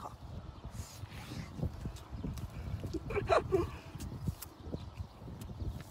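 A young woman chews and smacks her lips close up.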